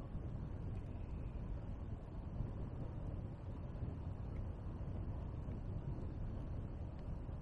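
Tyres roll steadily over a paved road with a low rumble.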